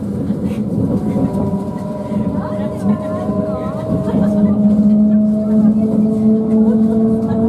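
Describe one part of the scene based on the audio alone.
A train's motor whines steadily, rising slightly in pitch.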